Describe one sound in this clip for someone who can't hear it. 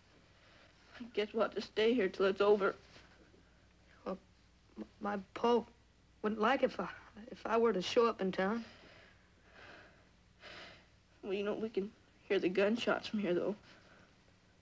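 A young boy speaks quietly and earnestly, close by.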